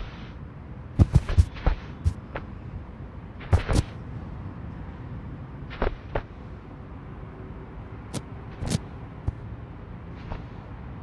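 A ball thumps and bounces on a hard floor.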